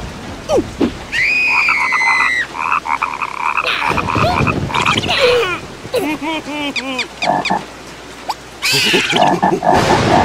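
A cartoon creature shouts in a high, squeaky voice.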